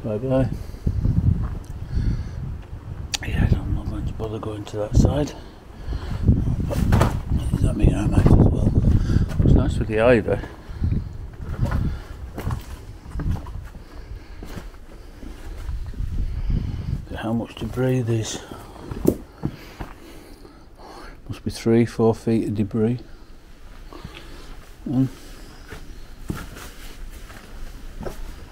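Footsteps crunch and scrape over loose stones.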